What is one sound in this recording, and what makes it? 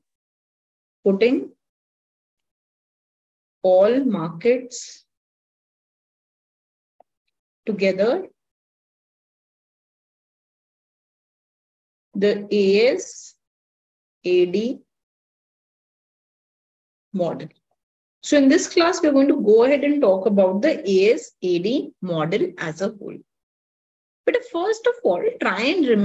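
A young woman speaks calmly in short phrases through an online call, with pauses between.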